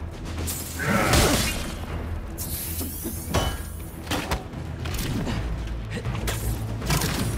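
Weapons strike and whoosh in a fight.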